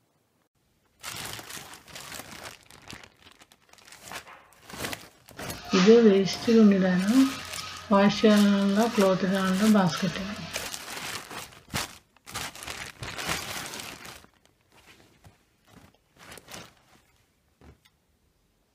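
Plastic bags and cloth rustle as a hand rummages through a basket.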